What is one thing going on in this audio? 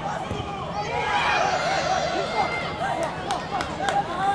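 A crowd cheers loudly in a stadium.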